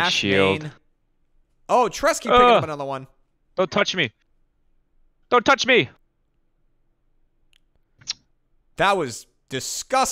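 A man speaks with animation into a close microphone, in short bursts.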